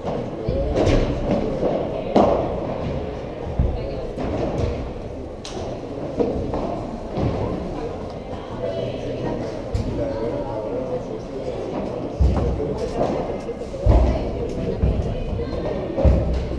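Footsteps shuffle and squeak on the court.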